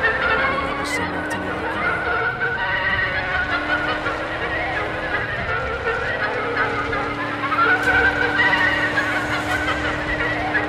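A car engine roars steadily.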